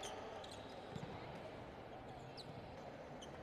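A volleyball is struck with a smack.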